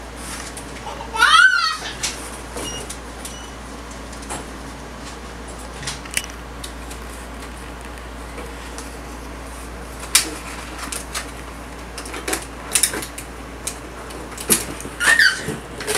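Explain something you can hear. A baby girl babbles and squeals nearby.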